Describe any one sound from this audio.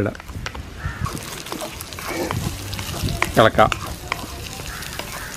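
Chopped vegetables sizzle in hot oil in a pan.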